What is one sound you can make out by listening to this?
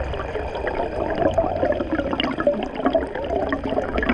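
Air bubbles gurgle and burble up through the water.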